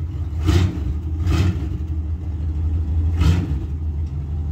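A truck's engine revs sharply in short bursts.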